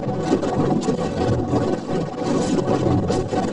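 Water splashes and bubbles loudly.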